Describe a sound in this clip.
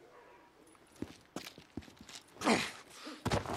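Footsteps crunch and scuff on rocky ground.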